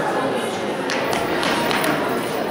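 A racket hits a tennis ball.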